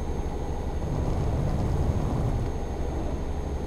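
A truck passes by in the opposite lane.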